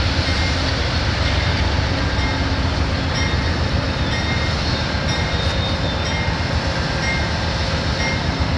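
A train rumbles loudly past on the tracks, with a steady roar.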